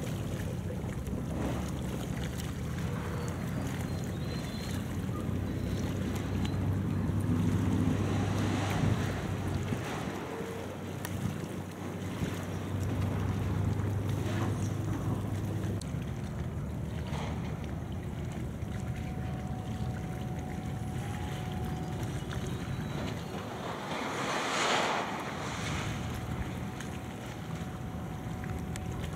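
Scrap metal clanks and rattles in a crane's grab.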